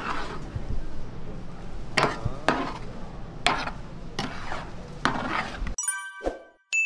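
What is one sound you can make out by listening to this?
Thick sauce bubbles and sizzles in a pan.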